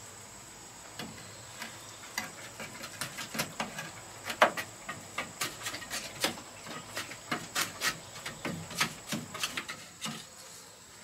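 Sharp knocks and taps strike wood, on and off.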